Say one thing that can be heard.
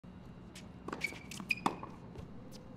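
A tennis ball is struck sharply with a racket.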